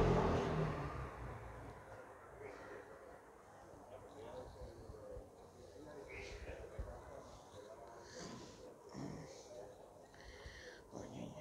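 A cat purrs softly up close.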